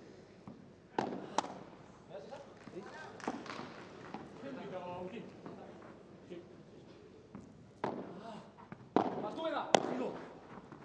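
A padel ball is struck back and forth with sharp pops.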